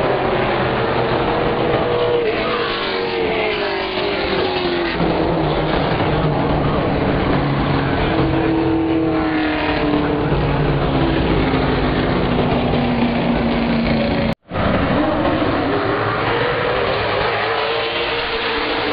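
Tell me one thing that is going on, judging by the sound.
Race car engines roar loudly as cars speed past, rising and falling in pitch.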